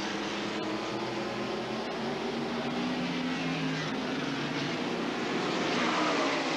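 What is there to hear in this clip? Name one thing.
Several race car engines roar loudly as the cars speed past.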